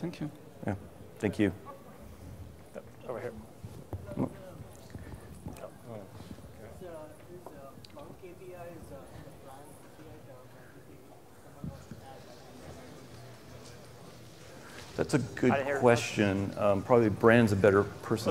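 A man speaks through a microphone in a large hall, explaining calmly.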